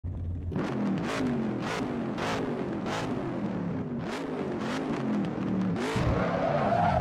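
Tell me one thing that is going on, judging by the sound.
A car engine revs up and down while idling.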